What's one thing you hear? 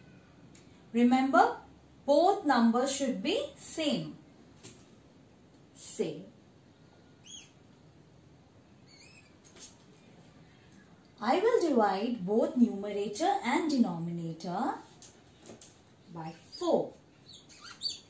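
A young woman speaks calmly and clearly at close range.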